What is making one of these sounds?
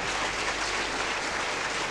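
An audience laughs together in a large hall.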